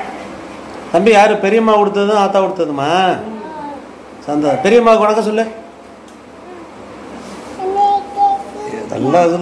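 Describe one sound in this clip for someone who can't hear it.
A small boy talks excitedly and laughs.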